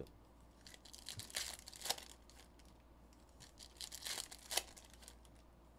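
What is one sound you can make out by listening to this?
Hands tear open foil card packs with crinkling rustles.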